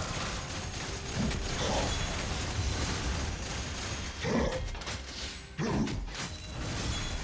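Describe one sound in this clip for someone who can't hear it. Game spell effects and blows clash and crackle continuously in a fight.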